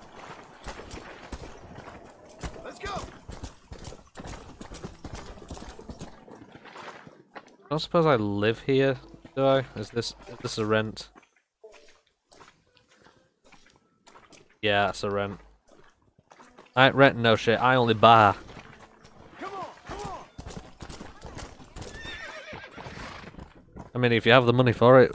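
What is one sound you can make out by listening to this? Horse hooves clatter at a gallop on hard ground.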